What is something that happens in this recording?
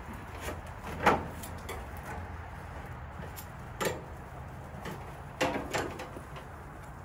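Metal tongs clack against a grill.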